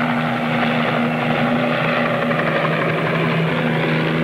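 A jet engine roars steadily overhead.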